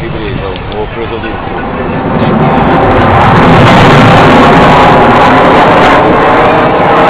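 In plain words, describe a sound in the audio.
A military jet roars overhead, growing louder as it dives closer.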